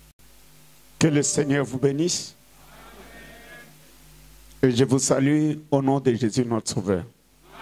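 A man speaks loudly into a microphone, heard through loudspeakers in an echoing hall.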